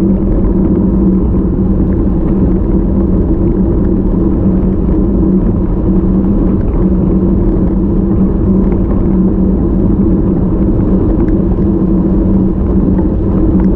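Wind rushes and buffets loudly against the microphone.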